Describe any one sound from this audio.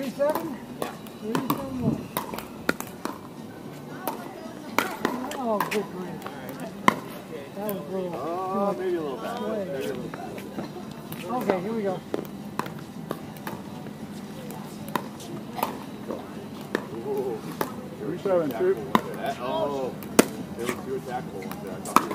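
Paddles pop sharply against a plastic ball.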